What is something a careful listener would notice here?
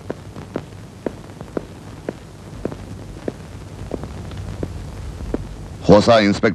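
Footsteps tap steadily across a hard floor.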